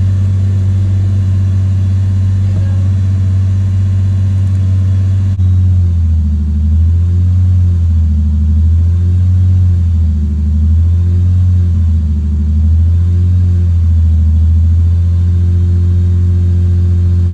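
A car engine idles with a low hum that rises and falls slightly.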